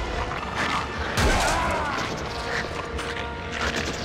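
A sword slashes with a heavy hit.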